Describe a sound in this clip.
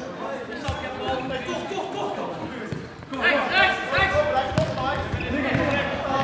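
A ball thuds as it is kicked across a hard indoor floor.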